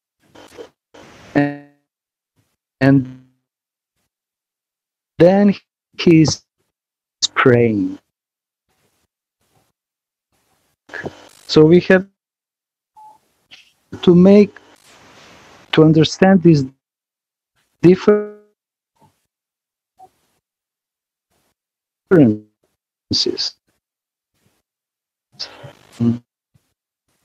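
A middle-aged man speaks over an online call.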